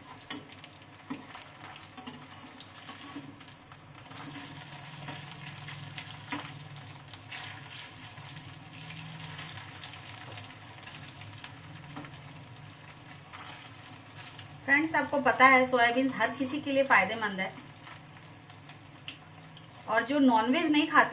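Oil sizzles steadily as food fries in a pan.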